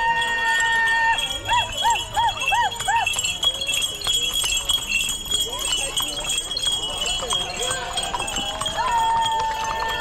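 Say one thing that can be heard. Horses' hooves clop on pavement.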